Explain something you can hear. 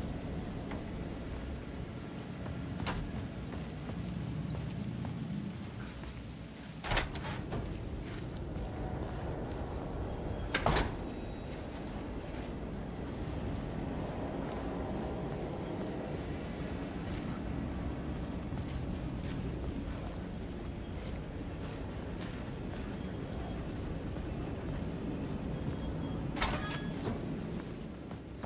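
Footsteps walk steadily over hard ground.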